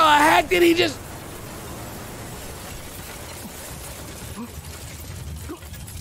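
A building collapses with a loud crash.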